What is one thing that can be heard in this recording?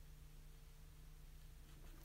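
A brush strokes softly on paper.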